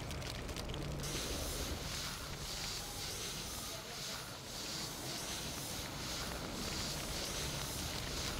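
Water sprays hard from a fire hose with a steady hiss.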